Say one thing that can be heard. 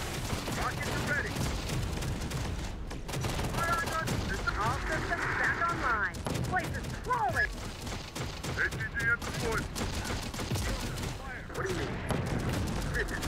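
Explosions boom in rapid succession.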